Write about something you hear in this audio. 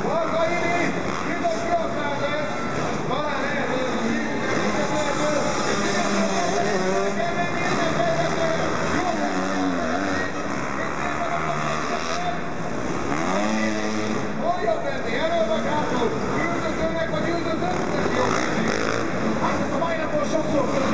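Dirt bike engines rev loudly and whine up and down in a large echoing hall.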